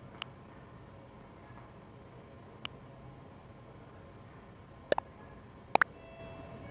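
Short electronic menu blips chime several times.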